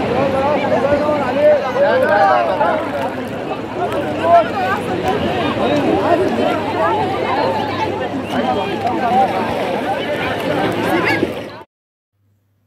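A crowd of people chatters and calls out nearby outdoors.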